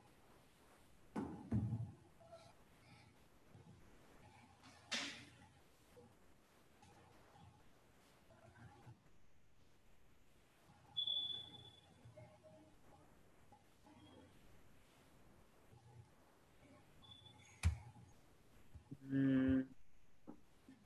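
A man speaks quietly and muffled, heard over an online call.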